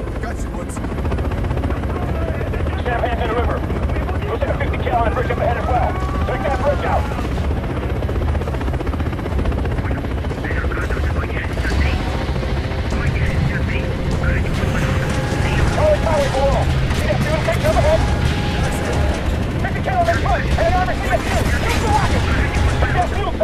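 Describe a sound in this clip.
A helicopter's rotor drones steadily and loudly close by.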